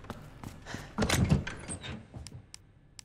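A heavy lid creaks and thuds open.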